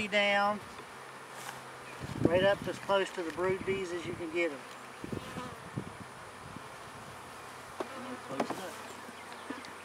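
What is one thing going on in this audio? A metal tool scrapes and knocks against a wooden beehive frame.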